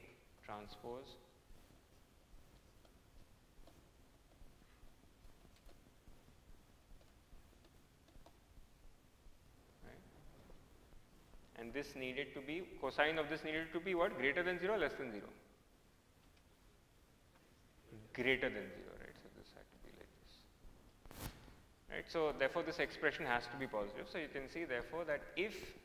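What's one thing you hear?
A man speaks calmly into a close microphone, explaining in pauses.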